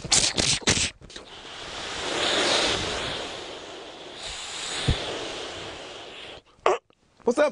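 A man blows a rushing, breathy noise into his cupped hands.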